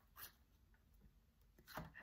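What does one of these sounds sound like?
Window blinds rattle as a hand moves a slat.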